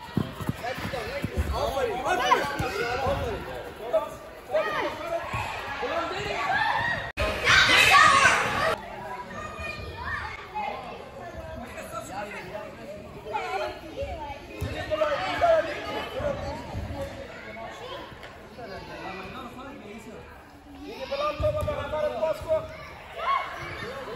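Children shout and call out excitedly in a large echoing hall.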